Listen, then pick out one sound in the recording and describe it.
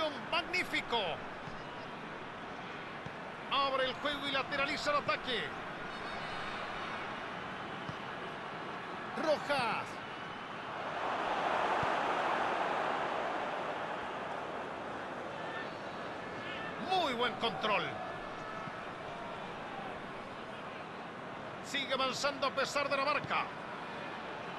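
A large stadium crowd murmurs steadily and briefly swells into a roar.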